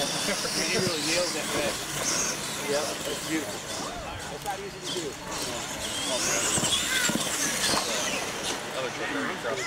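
Small electric motors whine as toy trucks race over dirt.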